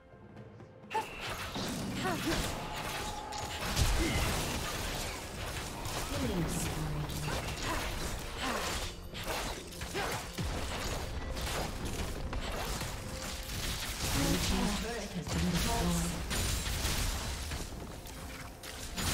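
Video game spell blasts and weapon hits crackle and boom during a battle.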